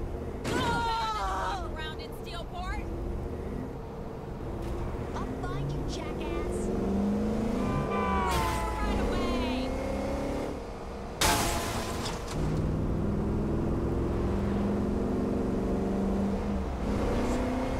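A vehicle engine hums and revs steadily as it drives.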